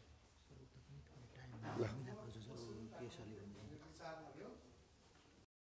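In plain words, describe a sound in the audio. Another man speaks quietly in the background.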